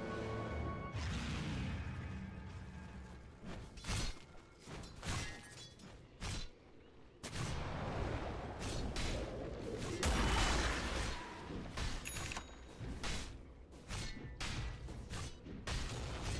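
Magic spells burst and crackle in a game battle.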